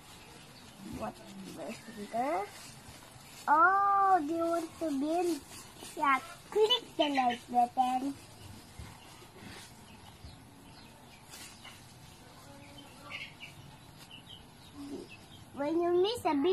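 A young boy talks close by in a high voice.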